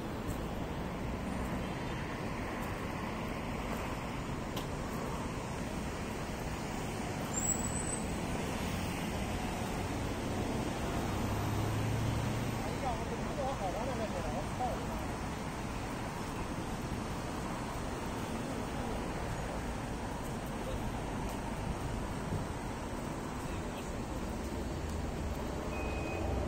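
Steady city traffic rumbles outdoors.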